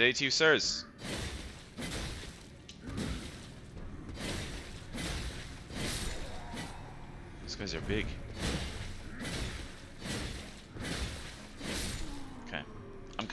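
Sword blows strike and thud against a large creature.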